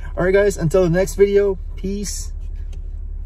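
A man talks animatedly close to a microphone.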